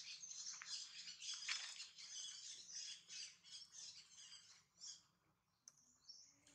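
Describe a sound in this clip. A monkey rustles through grass as it walks.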